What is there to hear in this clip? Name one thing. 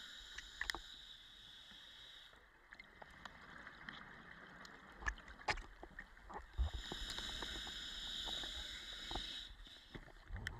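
A diver breathes in through a regulator with a steady hiss.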